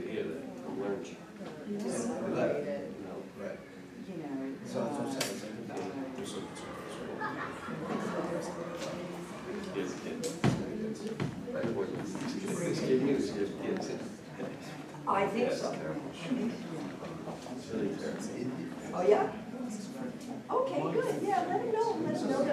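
Several adult men and women talk at once nearby in a room.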